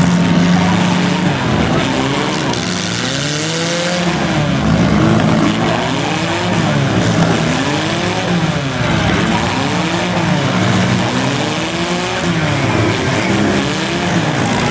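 A large crowd cheers in the distance.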